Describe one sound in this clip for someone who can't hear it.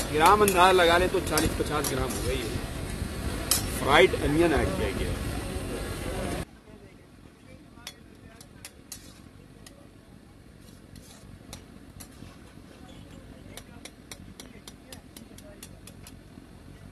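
A metal ladle scrapes and clinks against a wok.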